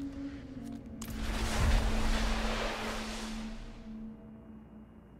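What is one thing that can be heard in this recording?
A magical whoosh swells loudly and slowly fades.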